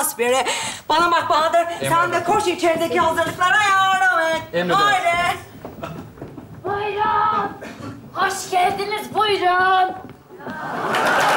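A woman speaks theatrically on a stage.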